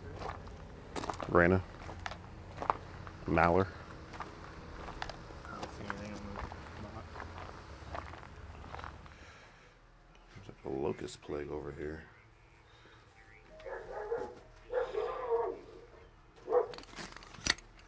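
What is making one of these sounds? A man talks nearby in short phrases.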